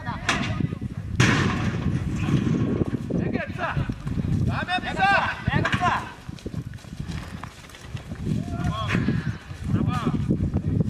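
Men shout and cheer outdoors.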